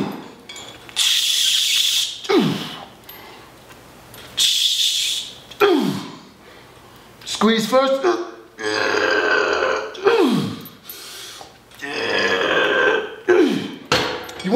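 A man exhales forcefully with each pull.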